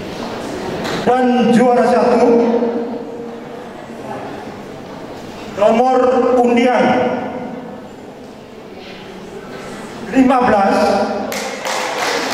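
A man chants loudly into a microphone through loudspeakers.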